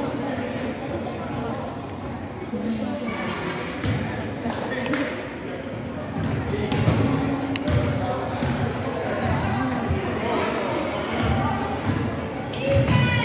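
Children and adults talk and call out in an echoing gym.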